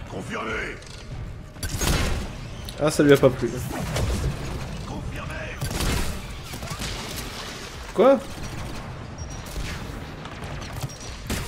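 Sniper rifle shots crack with a loud boom.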